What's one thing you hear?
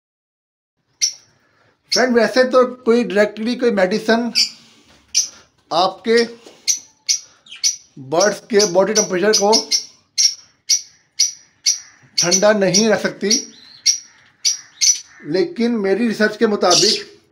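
Small birds chirp repeatedly in short, high calls.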